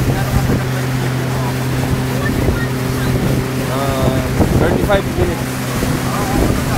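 A boat engine hums steadily and loudly.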